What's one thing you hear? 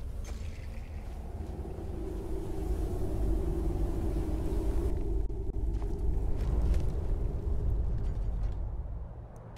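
Wind blows strongly outdoors.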